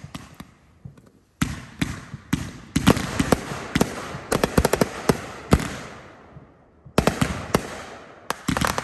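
Fireworks burst with loud booms and sharp cracks.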